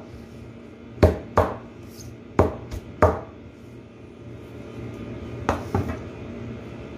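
A cleaver chops leafy greens on a board with sharp knocks.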